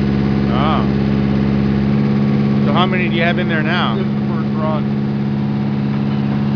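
A diesel engine runs with a loud, steady drone close by.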